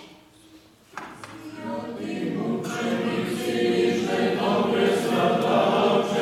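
Several men sing together in a large echoing room.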